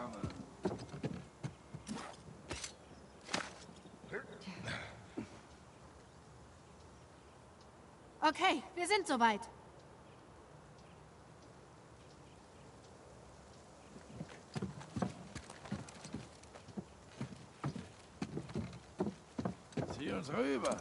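Footsteps thud and scuff on stone and wooden boards.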